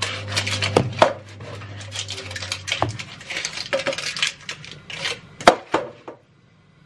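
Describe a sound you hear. Metal pans clank and knock together.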